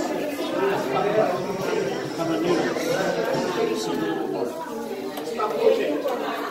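A crowd of men and women chatter nearby in a room.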